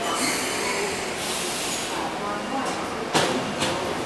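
A train rolls into a station and slows to a stop.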